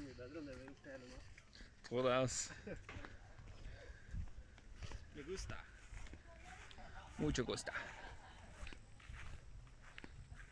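A person walks with soft footsteps on grass.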